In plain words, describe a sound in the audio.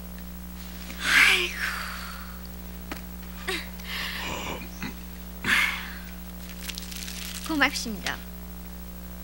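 A woman speaks in short, emotional bursts nearby.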